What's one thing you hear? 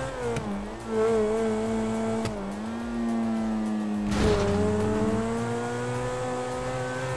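A sports car engine hums steadily and shifts in pitch as the car drives.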